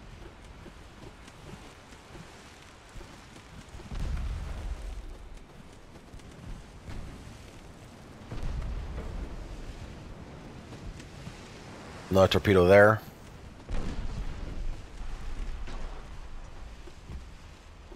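Sea water washes steadily against a ship's hull.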